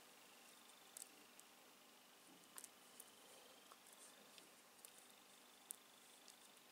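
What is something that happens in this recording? Small gravel grains crunch and shift softly under fingers.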